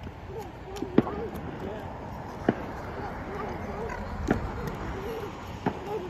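Small feet thump and slap on concrete as children jump and dance.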